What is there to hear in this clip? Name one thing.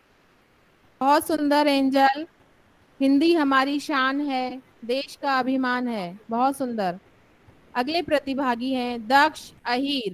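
A young woman speaks into a microphone over an online call.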